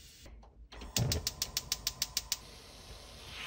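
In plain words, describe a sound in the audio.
A gas stove igniter clicks rapidly.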